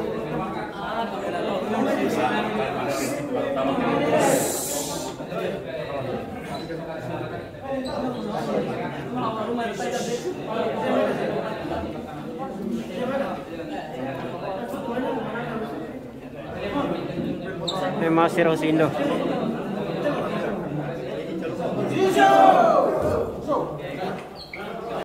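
A crowd of young men chatter and talk over one another in an echoing hall.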